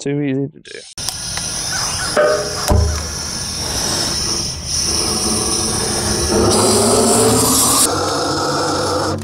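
A gas torch roars steadily.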